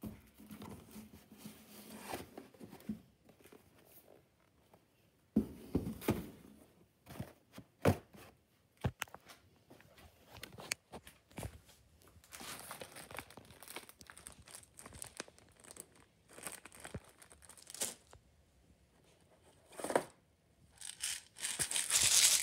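Plastic bottles and boxes knock and rattle as they are moved.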